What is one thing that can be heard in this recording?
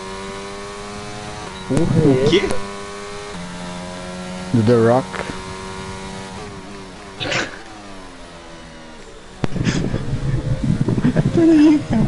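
A racing car engine whines steadily and shifts pitch with gear changes.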